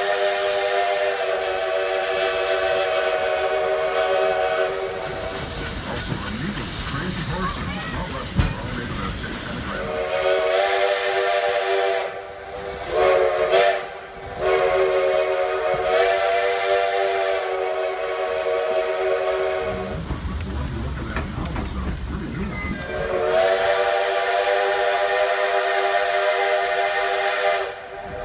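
A steam locomotive whistle blows long, steady blasts again and again.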